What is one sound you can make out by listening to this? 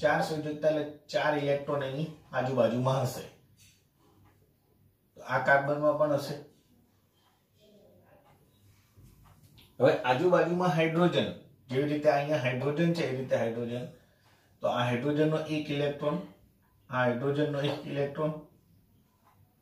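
A man speaks calmly and steadily through a close microphone, in short bursts with pauses.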